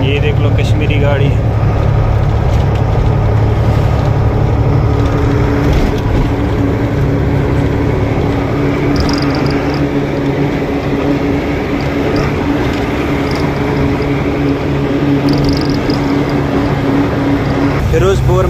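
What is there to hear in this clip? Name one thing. A vehicle's engine hums steadily as it drives along a highway.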